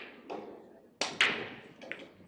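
A cue strikes the cue ball hard on a pool break shot.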